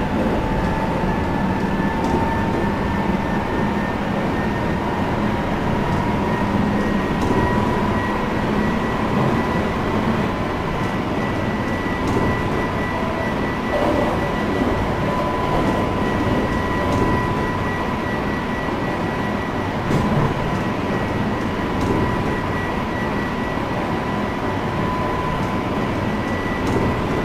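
An electric train's traction motors whine steadily.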